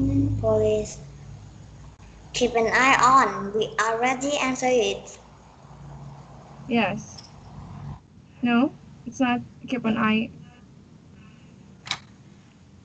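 A young woman speaks with animation through an online call.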